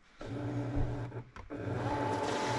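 A button clicks on a cutting machine.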